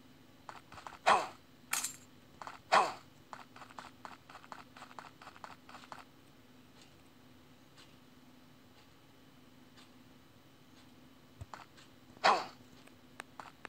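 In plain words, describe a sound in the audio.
A quick whoosh sounds each time a game character leaps through the air.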